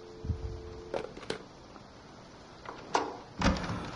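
A telephone handset is put down with a clunk.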